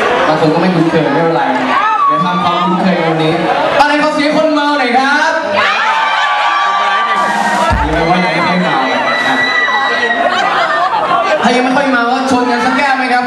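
A young man sings through a handheld microphone and loudspeakers.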